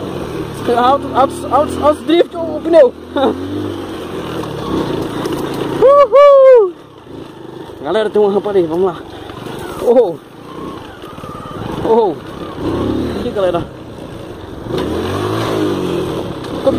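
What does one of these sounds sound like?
A small motorbike engine hums and revs unevenly.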